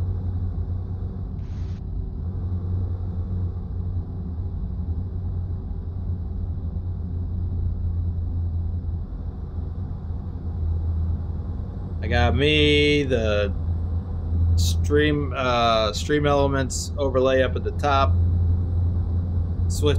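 A truck engine hums steadily in a low drone.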